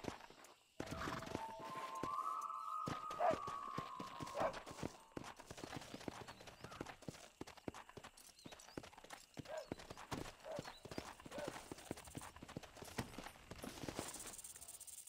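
A horse gallops with quick, heavy hoofbeats on dry ground.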